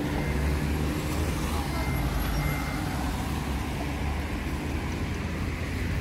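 A van drives past on a nearby road.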